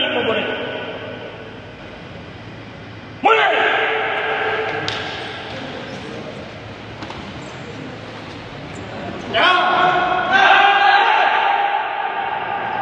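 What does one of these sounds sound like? A group of young men shout loudly together in an echoing hall.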